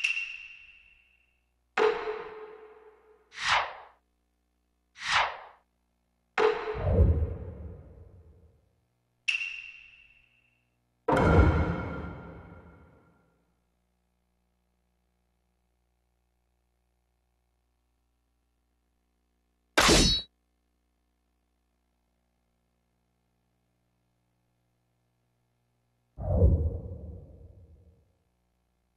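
Short game menu chimes and whooshes sound as options are picked.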